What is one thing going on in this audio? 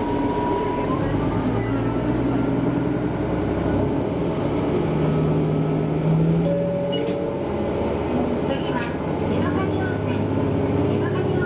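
A train's diesel engine revs up as the train pulls away.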